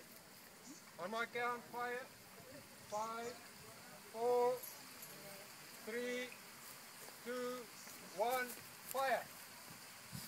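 A man calls out loudly outdoors.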